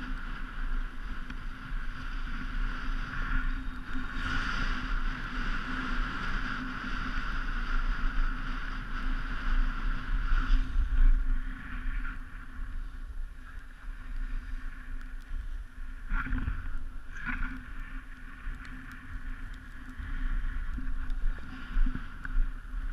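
Skis or a snowboard scrape and hiss over packed snow.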